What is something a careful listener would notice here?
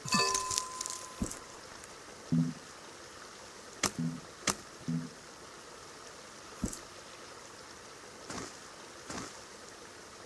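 A waterfall rushes steadily.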